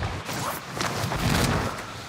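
Wind rushes loudly past a skydiver in free fall.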